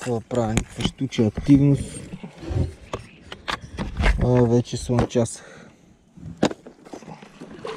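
A plastic box rattles and clicks as it is handled.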